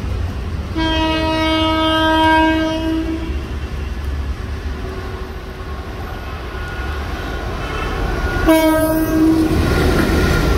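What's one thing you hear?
An electric locomotive's horn blares loudly twice.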